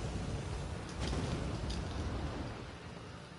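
Flames roar up in a sudden burst.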